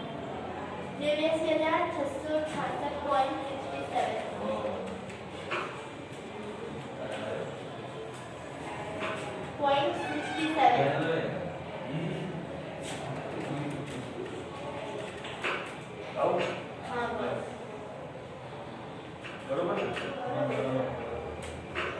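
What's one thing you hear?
A middle-aged man speaks calmly, lecturing.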